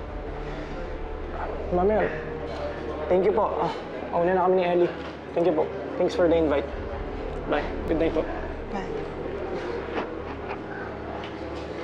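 An older woman talks warmly and cheerfully nearby.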